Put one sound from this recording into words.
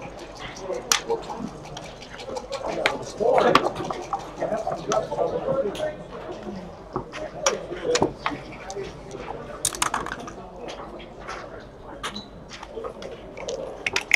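Dice rattle and clatter onto a board.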